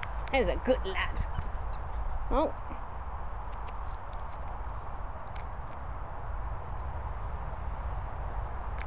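A dog's paws patter as it runs across grass.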